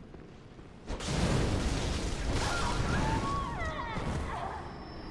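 A blade slashes and strikes with loud impacts.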